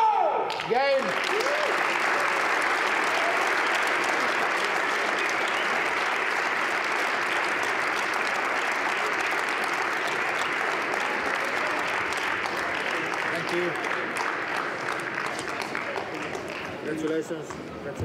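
A crowd applauds loudly in a large echoing hall, and the applause slowly fades.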